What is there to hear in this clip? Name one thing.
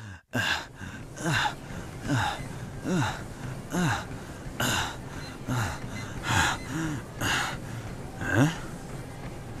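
A man grunts and pants with effort in a steady rhythm.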